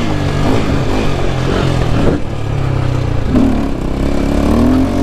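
A motorcycle engine hums steadily, revving up and down.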